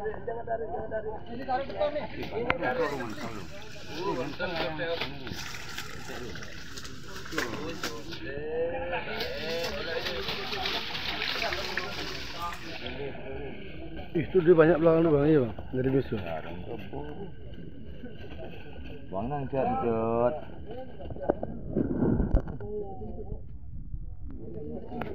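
Small fish splash and flutter in water.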